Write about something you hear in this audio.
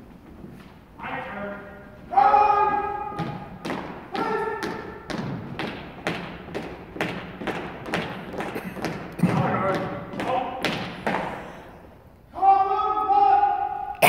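A man shouts drill commands loudly in an echoing hall.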